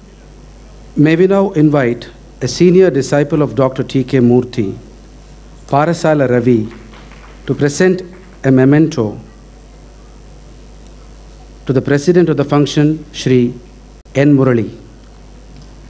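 A man speaks calmly through a loudspeaker in a large hall.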